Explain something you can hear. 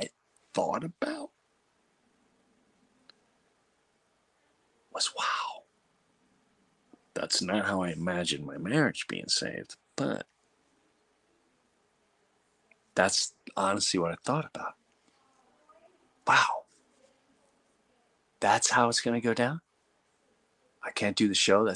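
A middle-aged man speaks close to a microphone in short, animated bursts with long pauses.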